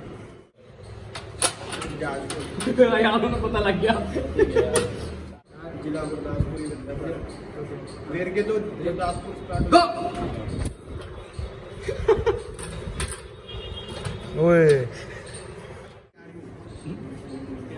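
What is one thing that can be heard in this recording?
Men talk and laugh close by.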